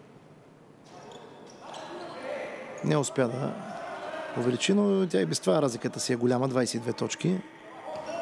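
Sneakers squeak on a hard court as players run.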